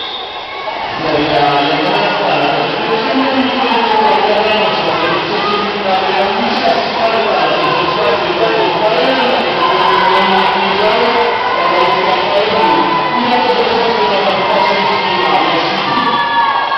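A crowd cheers and shouts loudly, echoing in a large hall.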